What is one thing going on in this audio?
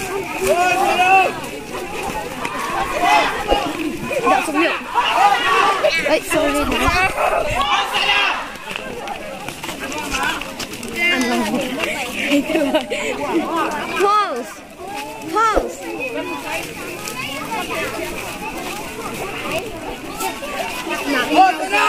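A group of young people talk and shout over each other close by.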